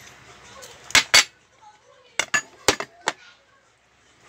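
A glass knocks on a table.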